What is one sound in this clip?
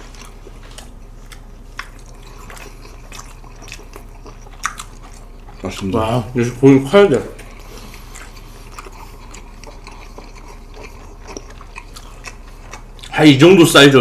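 Food is chewed and crunched close to a microphone.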